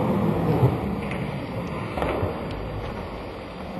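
Footsteps thud quickly down stairs.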